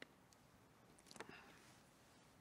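A man speaks briefly and softly into a microphone.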